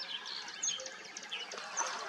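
Water sloshes as a hippo moves through it.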